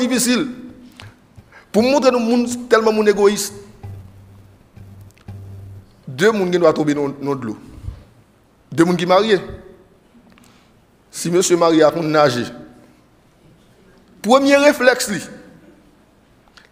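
A man preaches with animation through a microphone, pausing between phrases.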